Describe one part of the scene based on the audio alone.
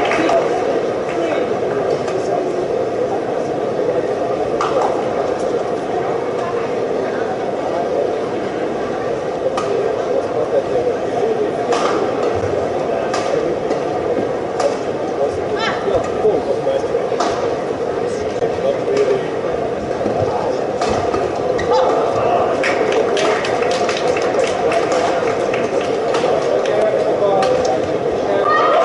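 A crowd murmurs steadily in a large hall.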